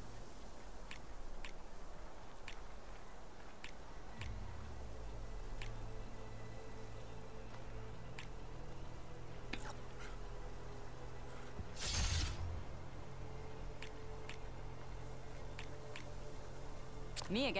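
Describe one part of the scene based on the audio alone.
Soft game menu clicks sound now and then as pieces are selected.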